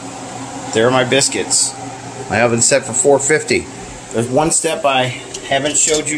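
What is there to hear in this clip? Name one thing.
An oven's control panel beeps as buttons are pressed.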